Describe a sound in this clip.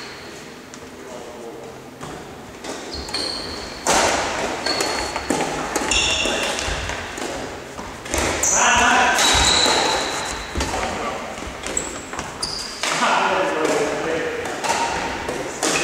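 Sports shoes squeak on a hall floor.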